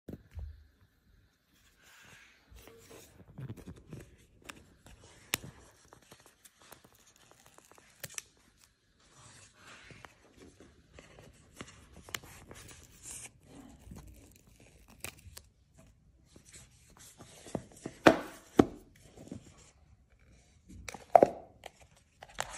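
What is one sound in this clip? Paper and cardboard rustle and scrape as a box is handled.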